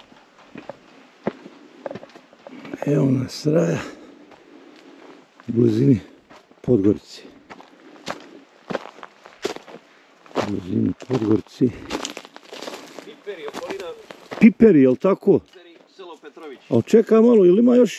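Footsteps crunch on gravel and dry leaves.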